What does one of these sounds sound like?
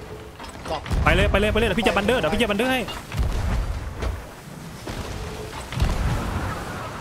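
Cannons fire with deep booms.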